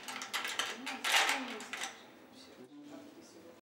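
A metal handle clicks back into place.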